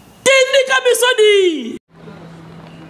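A man shouts with animation into a microphone.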